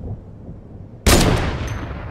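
A sniper rifle fires a single loud, echoing shot.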